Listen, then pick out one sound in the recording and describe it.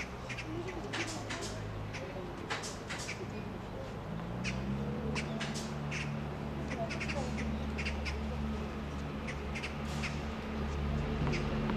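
Footsteps pass close by on a hard court.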